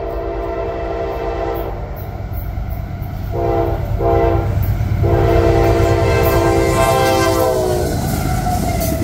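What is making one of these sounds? A train horn blares in long, loud blasts, coming closer.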